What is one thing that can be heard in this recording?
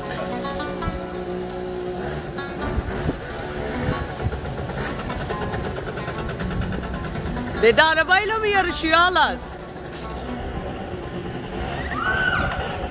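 A scooter motor hums as a scooter rides slowly.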